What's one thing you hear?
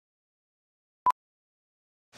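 A short beep sounds once.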